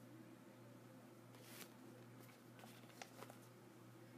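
A soft toy rustles softly as a hand moves it across carpet.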